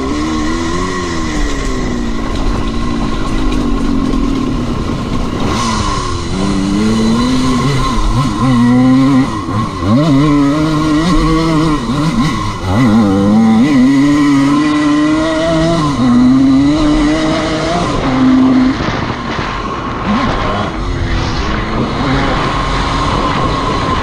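Tyres crunch over a dry dirt track.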